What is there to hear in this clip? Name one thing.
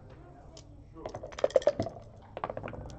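Dice rattle in a cup and clatter onto a board.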